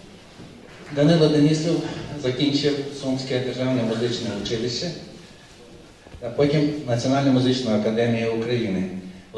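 A man speaks calmly into a microphone over a loudspeaker in a large hall.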